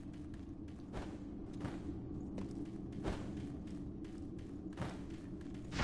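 Footsteps tread quickly over rocky ground.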